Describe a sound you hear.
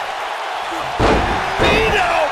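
A body slams hard onto a wrestling ring mat with a loud thud.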